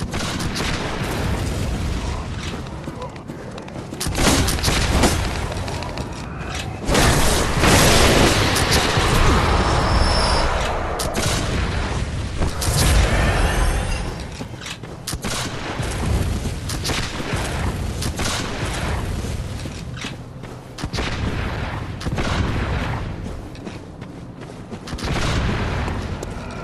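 Footsteps crunch steadily over rough ground.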